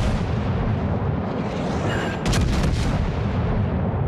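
Shells explode in the water with loud bangs and splashes.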